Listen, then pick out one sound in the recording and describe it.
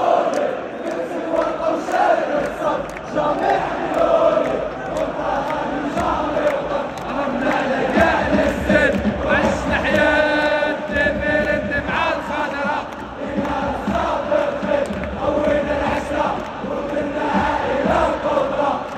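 A huge stadium crowd chants and sings loudly together, echoing around the stands.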